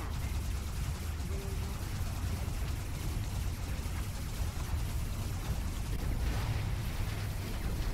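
Laser guns zap repeatedly.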